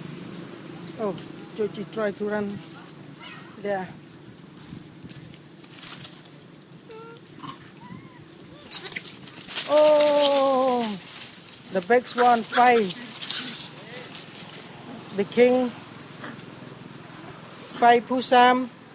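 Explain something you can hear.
A young monkey squeals and chirps repeatedly, close by.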